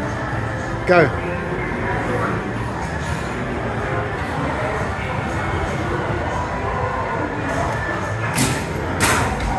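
A basketball thuds against a hoop's backboard.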